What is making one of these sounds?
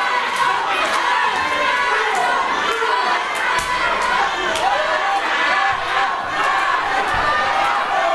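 Hands slap sharply on bare skin as wrestlers strike each other.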